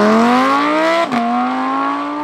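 A sports car exhaust pops and bangs as the gears change.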